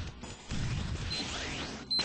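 Explosions burst.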